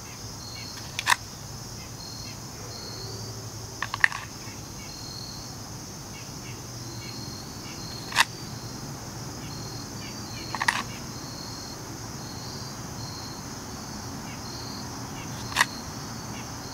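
A handgun fires single shots outdoors, each crack echoing briefly.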